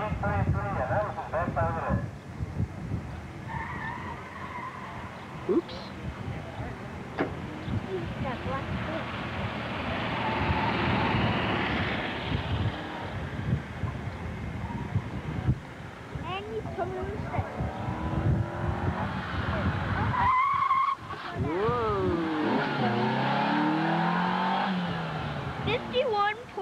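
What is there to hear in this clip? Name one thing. Car tyres squeal on pavement through sharp turns.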